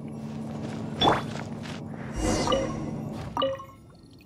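A bright chime rings out with a shimmering swell.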